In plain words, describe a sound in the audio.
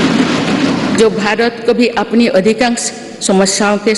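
A woman speaks calmly and formally into microphones.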